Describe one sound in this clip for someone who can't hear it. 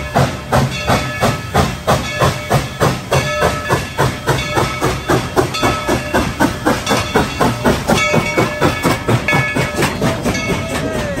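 A steam locomotive chuffs in loud, rapid, rhythmic puffs close by.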